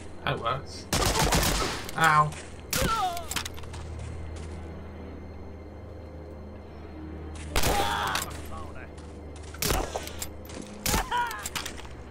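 Gunshots crack sharply several times, with a short echo.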